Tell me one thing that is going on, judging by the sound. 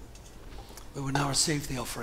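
An elderly man speaks through a microphone in a large echoing room.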